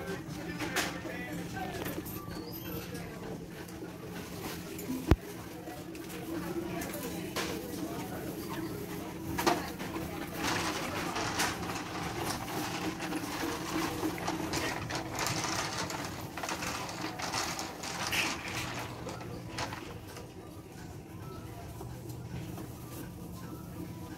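Footsteps in sandals shuffle across a hard floor.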